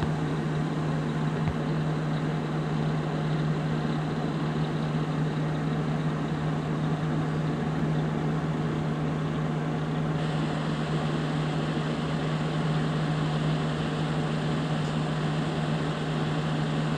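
A simulated semi truck's engine drones while cruising on a highway.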